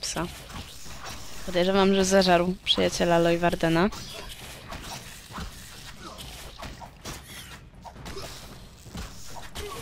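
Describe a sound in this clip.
A sword swings and strikes in a fight.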